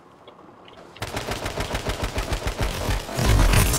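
Rapid gunfire rings out in bursts.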